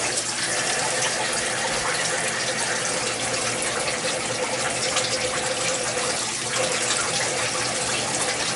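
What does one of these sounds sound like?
Coolant sprays and hisses onto the workpiece.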